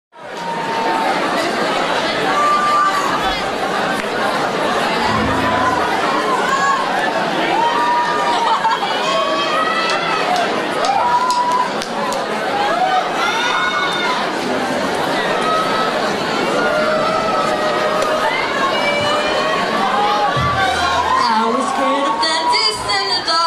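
A woman sings loudly into a microphone over a live band.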